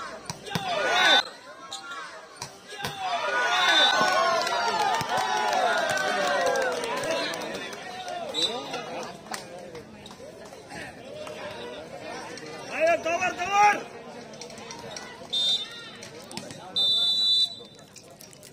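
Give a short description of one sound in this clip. A referee blows a whistle in short blasts.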